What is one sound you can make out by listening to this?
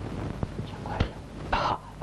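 A man sobs and whimpers.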